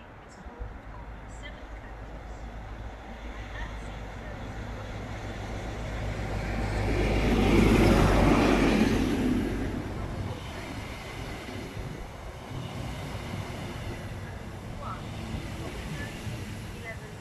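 A train approaches, its rumble growing louder, then rushes past close by and slowly fades.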